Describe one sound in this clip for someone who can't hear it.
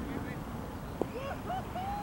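A cricket bat knocks a ball once.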